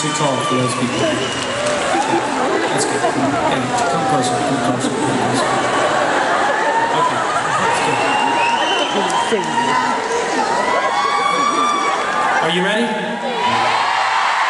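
Many voices in a crowd sing along loudly.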